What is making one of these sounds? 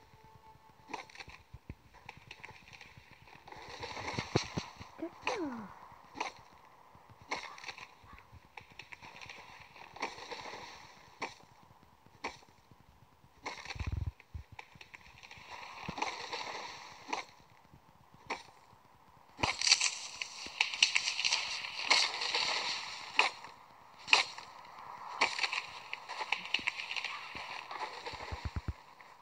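An axe chops wood in quick, repeated blows.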